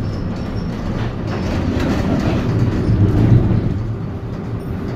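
A tram rolls by close outside.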